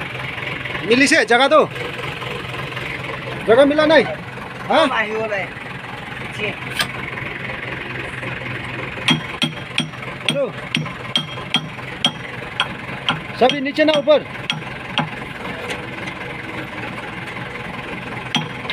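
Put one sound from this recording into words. A diesel engine idles steadily nearby.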